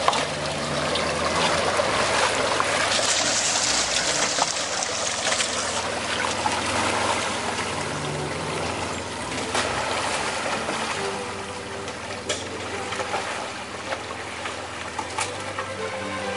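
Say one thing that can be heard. An engine rumbles as a vehicle drives slowly away.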